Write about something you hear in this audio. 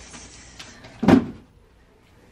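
A cardboard box thumps down onto a surface.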